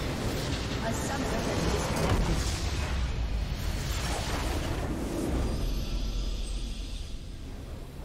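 A crystal structure explodes with a loud crash and rumble.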